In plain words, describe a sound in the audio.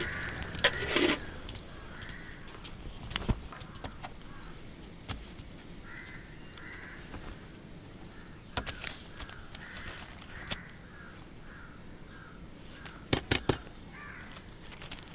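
A wooden spinning wheel knocks and creaks as it turns.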